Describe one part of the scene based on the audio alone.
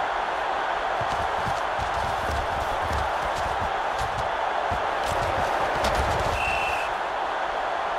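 Football players thud heavily as they collide and tackle.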